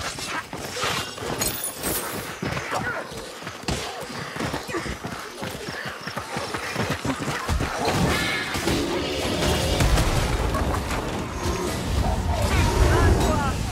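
Blades swing and thud into bodies in a close fight.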